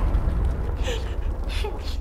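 A young woman speaks tensely.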